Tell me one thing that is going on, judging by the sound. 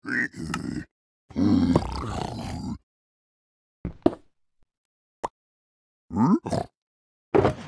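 A pickaxe chips at stone blocks in a game.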